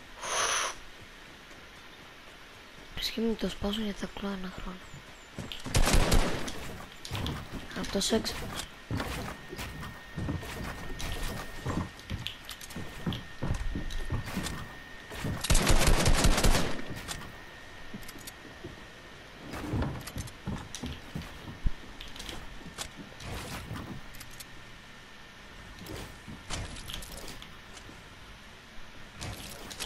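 Wooden walls and ramps snap into place quickly in a video game.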